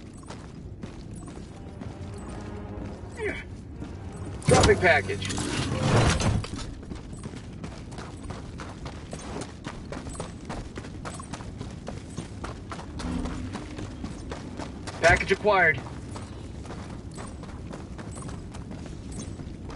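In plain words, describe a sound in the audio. Heavy footsteps crunch on gravel.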